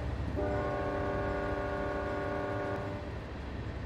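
A train horn blares loudly and then stops.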